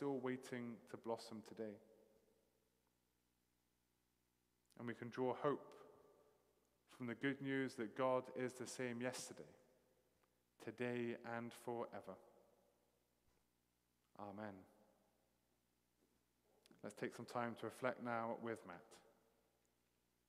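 A middle-aged man speaks calmly and clearly into a microphone in a large echoing hall, with pauses between phrases.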